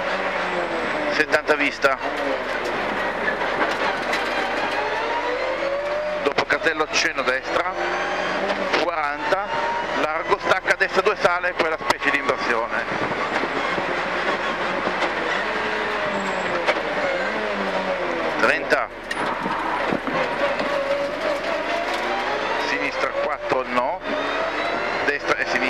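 A rally car engine roars and revs up and down as gears change.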